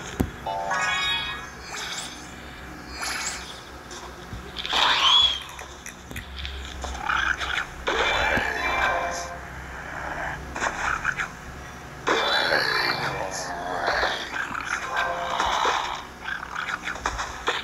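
Cartoon game effects pop and chime.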